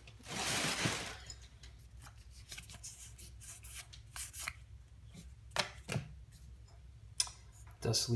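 Playing cards slide and flick against each other as they are shuffled through by hand.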